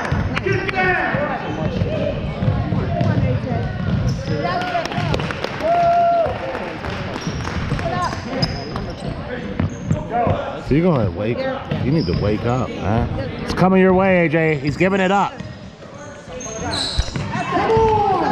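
A crowd of spectators talks and calls out.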